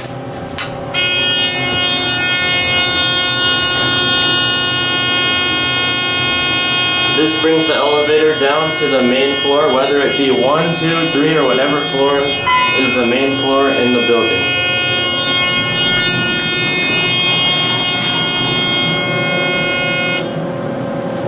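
An elevator alarm buzzer sounds steadily, then stops.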